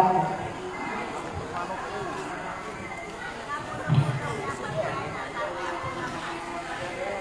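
A woman's singing plays loudly through a loudspeaker.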